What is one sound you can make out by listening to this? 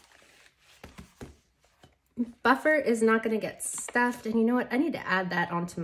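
Paper banknotes rustle softly as they are handled.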